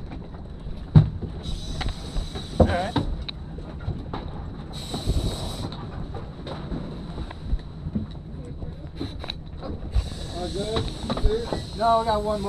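A boat's engine rumbles low and steady.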